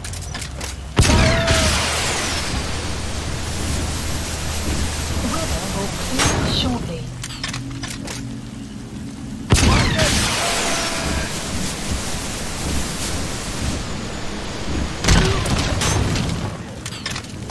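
Loud explosions boom and rumble several times.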